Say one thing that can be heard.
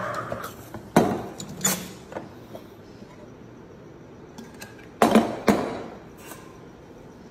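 Metal parts of a coffee machine clank and knock sharply a few times.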